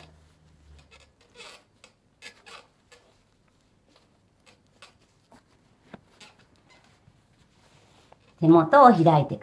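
Silk fabric rustles softly as hands fold and tuck it.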